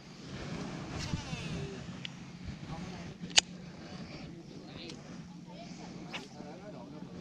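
A fishing reel clicks sharply a few times close by.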